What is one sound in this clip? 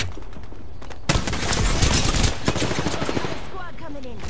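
An automatic rifle fires rapid, loud bursts of shots.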